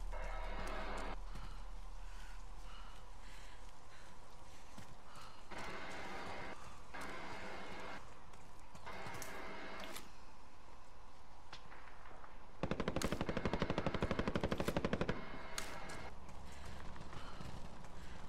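Footsteps run over dry dirt and grass.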